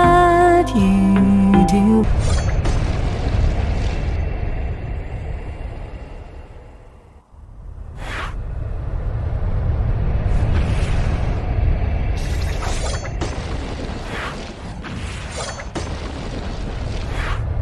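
Game battle effects whoosh and clash.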